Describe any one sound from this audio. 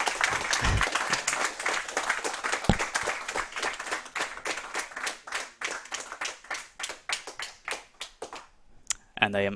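An audience claps and the applause slowly dies away.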